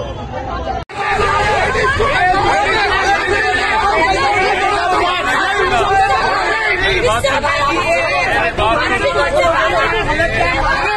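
A young man shouts angrily close by.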